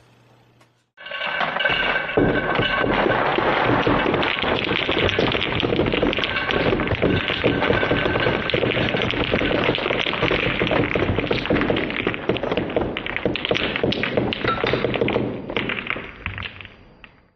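Dice clatter and tumble onto a pile of paper.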